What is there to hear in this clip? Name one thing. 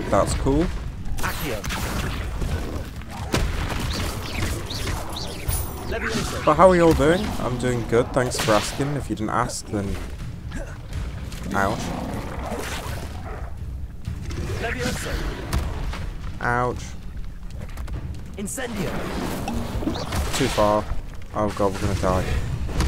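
A large creature croaks and growls.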